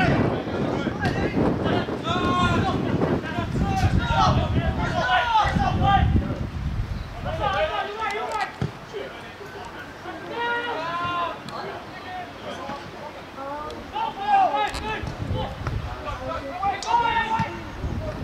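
Players shout and call out across an open field.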